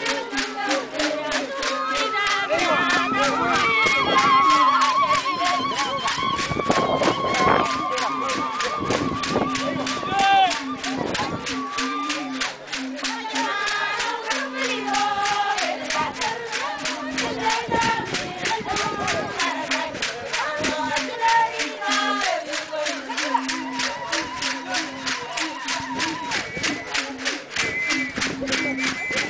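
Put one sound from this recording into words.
A group of women sing together outdoors.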